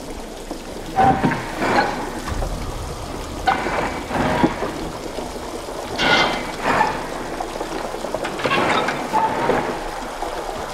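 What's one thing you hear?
A metal valve wheel creaks and squeals as it is turned in bursts.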